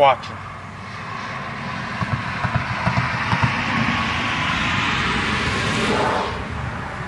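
A vehicle drives past on a dirt road.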